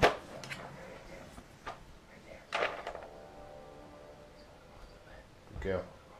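A treat tub rattles and its lid rustles.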